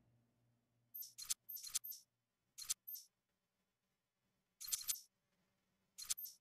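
Short bright menu chimes click several times.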